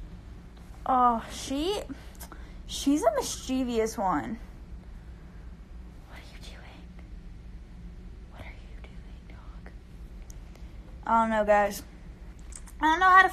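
A young woman talks close to the microphone in a lively, playful voice.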